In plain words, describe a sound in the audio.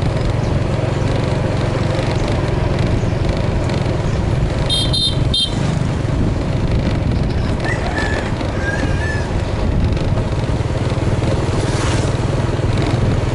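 A motorbike engine rumbles steadily while riding.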